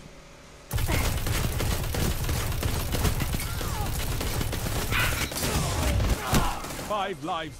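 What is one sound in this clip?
Gunfire bursts rapidly with loud explosions.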